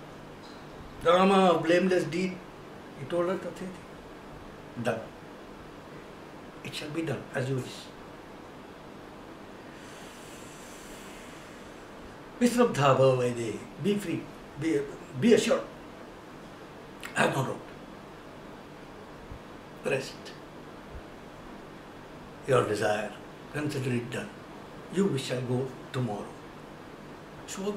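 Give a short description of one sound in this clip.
A middle-aged man speaks calmly in short phrases close by, with pauses.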